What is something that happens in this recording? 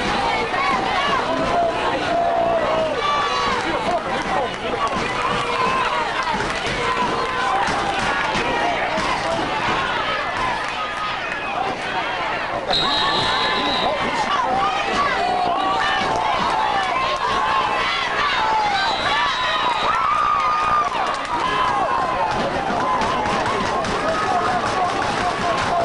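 Many voices shout and cheer outdoors.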